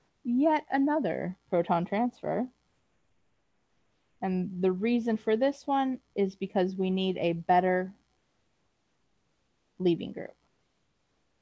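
A woman explains calmly over an online call microphone.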